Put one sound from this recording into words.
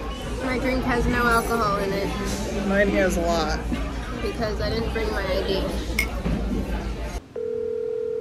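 Young women talk and laugh.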